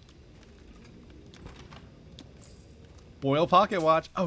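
A wooden wardrobe door swings open.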